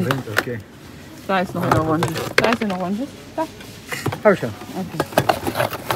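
Metal cans clink and knock together as they are handled.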